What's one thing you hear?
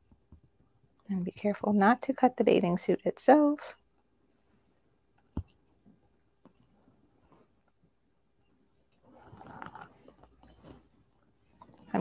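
Scissors snip through fabric.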